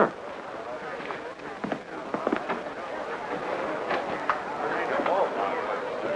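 A crowd of men and women chatters in the background.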